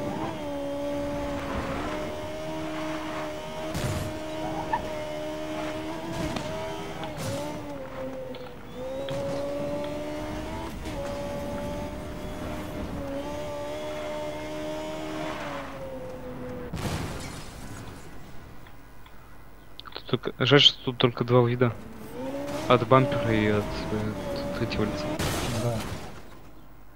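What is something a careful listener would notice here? A racing car engine roars at high speed, its pitch shifting as it changes gear.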